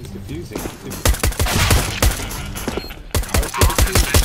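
A silenced pistol fires rapid, muffled shots.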